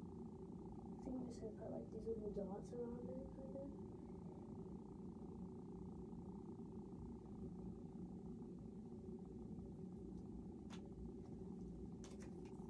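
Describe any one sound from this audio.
Small plastic toy pieces click and clatter.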